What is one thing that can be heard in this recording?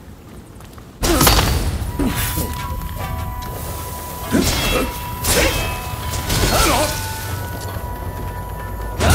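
Swords clash and ring with metallic clangs.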